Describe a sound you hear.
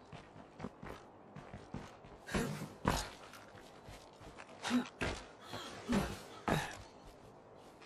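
Footsteps crunch on a road.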